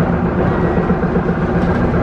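A bus drives past.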